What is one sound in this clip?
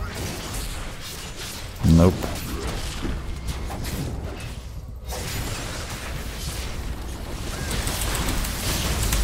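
Video game battle effects clash and crackle.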